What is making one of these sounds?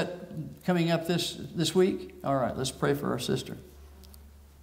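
A man speaks calmly into a microphone in a large echoing hall.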